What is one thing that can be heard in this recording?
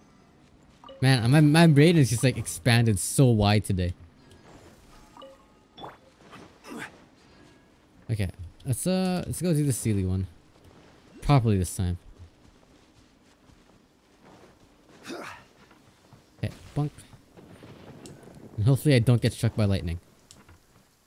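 A young man talks with animation, close to a microphone.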